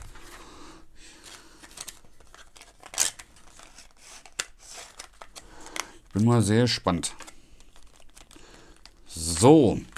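A plastic sleeve rustles and crinkles as hands handle a small box.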